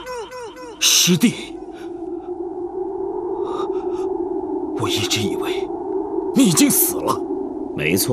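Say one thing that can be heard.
A man speaks tensely and in surprise, close by.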